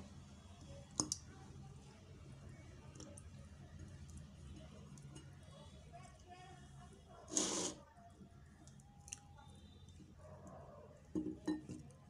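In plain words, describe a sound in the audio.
Pieces of fruit drop into water in a glass with soft splashes.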